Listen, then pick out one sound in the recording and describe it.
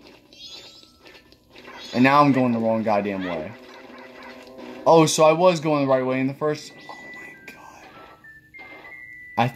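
Electronic game sound effects chime and ring out from a television speaker.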